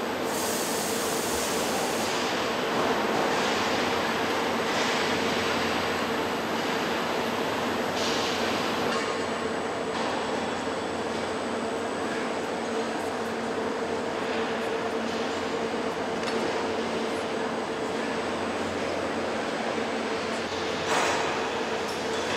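A transport cart whirs as it carries a chassis along the floor.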